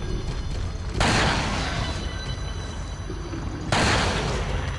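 Gunshots ring out one at a time, each followed by a short echo.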